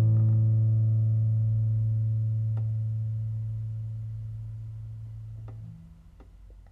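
A nylon-string guitar chord rings out close by and slowly fades away.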